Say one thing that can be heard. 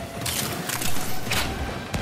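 Electric zaps crackle sharply.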